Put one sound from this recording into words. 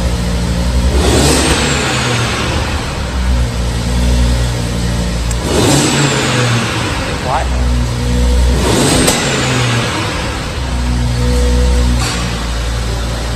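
A car engine revs hard in short bursts and crackles as it settles.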